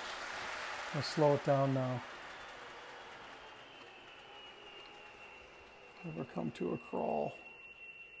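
A model locomotive horn sounds in short blasts.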